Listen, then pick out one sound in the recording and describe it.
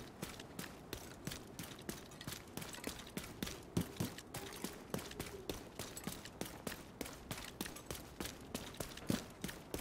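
Footsteps run quickly over rubble-strewn ground.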